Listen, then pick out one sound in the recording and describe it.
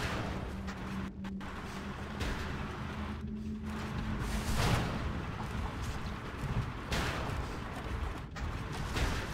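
A cannon fires shells in repeated booming blasts.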